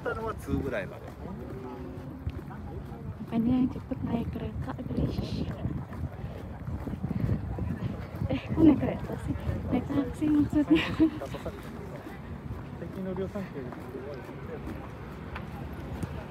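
Men and women talk quietly as they walk past nearby.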